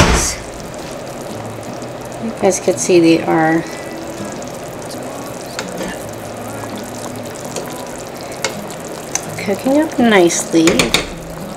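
A fork scrapes and taps against a metal pot.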